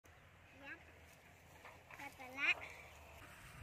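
A calf bleats in short high calls.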